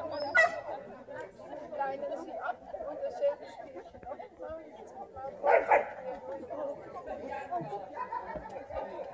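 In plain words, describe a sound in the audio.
Several men and women talk and chatter together nearby outdoors.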